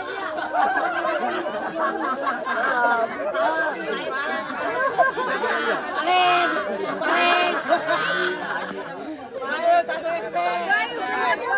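A group of men shout and cheer excitedly outdoors.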